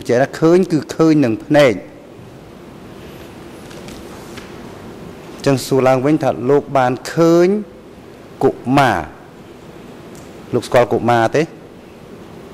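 A man speaks calmly into a microphone in short bursts, with long pauses.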